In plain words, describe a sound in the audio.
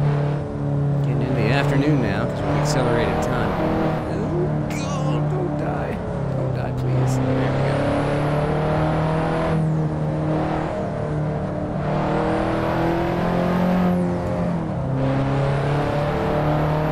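A car engine hums steadily, its pitch rising and falling slightly.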